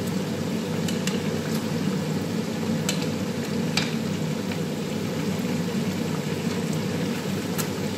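Oil sizzles and bubbles steadily in a frying pan.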